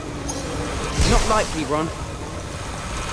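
A magic spell fires with a sharp whooshing zap.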